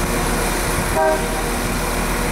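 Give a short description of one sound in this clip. A diesel train's horn sounds briefly.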